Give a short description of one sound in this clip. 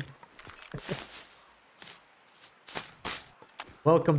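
Plant stalks rustle and snap as they are pulled.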